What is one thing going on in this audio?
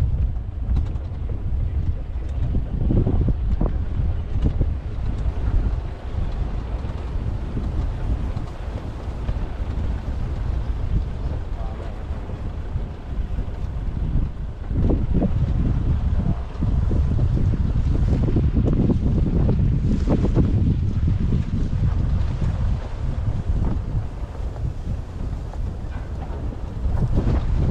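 Wind rumbles and buffets across open ground outdoors.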